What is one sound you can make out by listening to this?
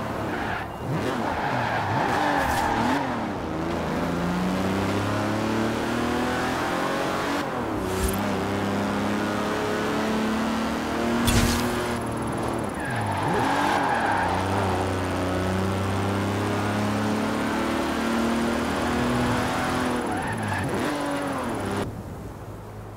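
A powerful car engine roars and revs up through the gears, dropping in pitch at each gear change.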